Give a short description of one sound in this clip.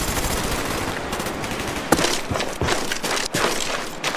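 Gunshots crack close by in short bursts.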